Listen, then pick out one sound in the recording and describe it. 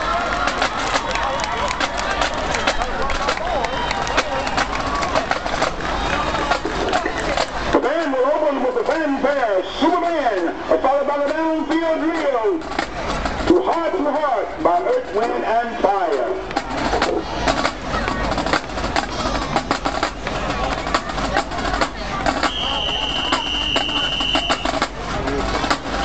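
Drums pound a steady marching beat.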